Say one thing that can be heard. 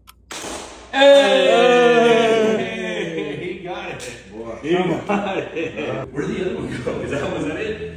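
A man shouts and yells excitedly nearby.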